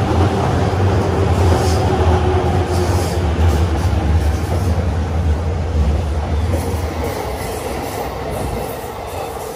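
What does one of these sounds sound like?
A train rumbles past close by with a loud roar, then fades away.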